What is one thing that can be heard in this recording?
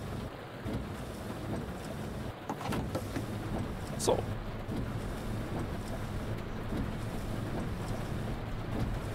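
Heavy rain patters steadily on a windshield.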